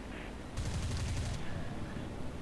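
Machine guns fire a short rapid burst.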